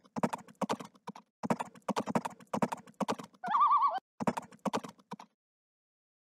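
Horses' hooves clatter as riders move across open ground.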